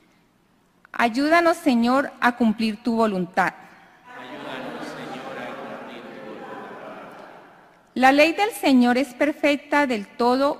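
A young woman reads out calmly through a microphone, echoing in a large hall.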